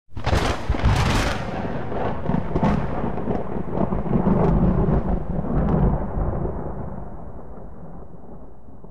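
Rain falls steadily on leaves, with droplets pattering and splashing.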